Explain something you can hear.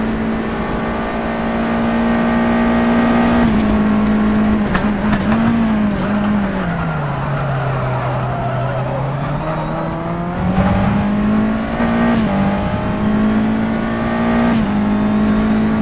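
A race car engine roars loudly, dropping in pitch through a bend and rising again as it accelerates.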